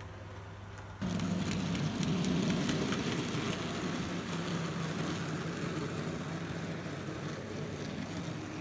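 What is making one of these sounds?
A model freight train rumbles and clatters past close by.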